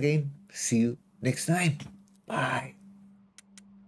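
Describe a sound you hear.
A man speaks casually and closely into a microphone.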